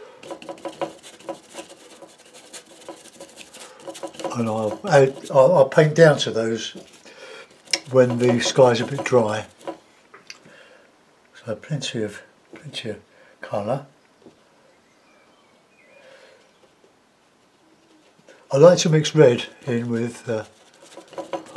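A stiff brush dabs and scrubs on canvas.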